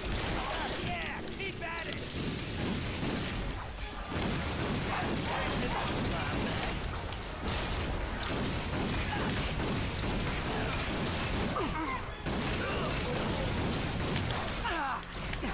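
Blasters fire in rapid bursts.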